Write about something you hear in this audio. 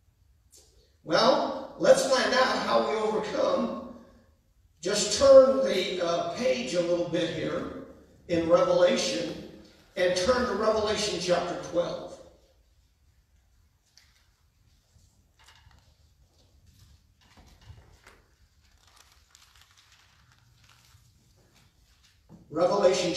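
A man speaks steadily into a microphone in a large echoing hall, with pauses between phrases.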